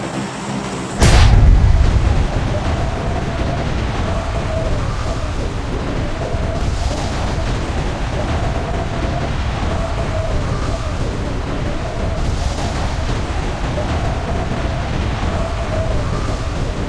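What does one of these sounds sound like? Wind rushes loudly in a fast fall through the air.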